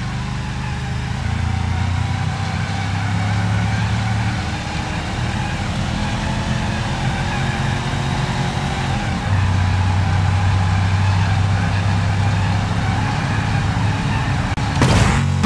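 Tyres rumble on a hard road.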